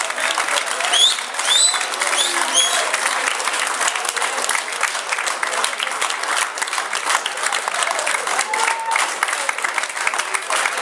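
A crowd of men and women chatters and cheers in an echoing hall.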